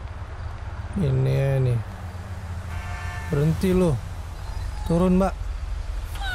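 Car horns honk loudly in long blasts.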